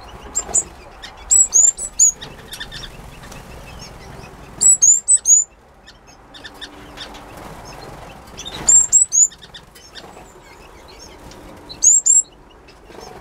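Small birds chirp and tweet in short bright bursts close by.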